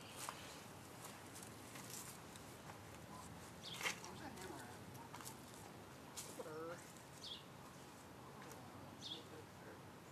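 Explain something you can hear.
Footsteps tread on grass outdoors.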